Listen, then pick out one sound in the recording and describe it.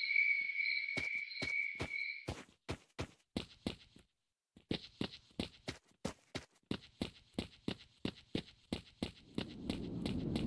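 Footsteps crunch steadily on rough ground.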